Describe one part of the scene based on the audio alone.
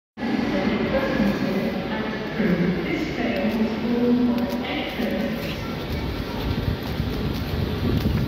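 A stationary train's engine hums and rumbles steadily nearby.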